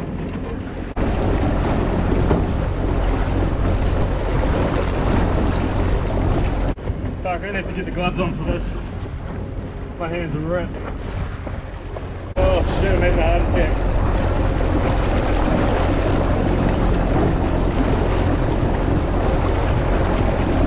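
Wind roars loudly against the microphone.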